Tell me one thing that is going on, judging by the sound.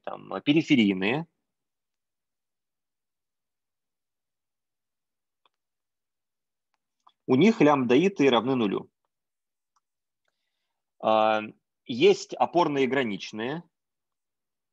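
A young man speaks calmly over an online call, pausing between phrases.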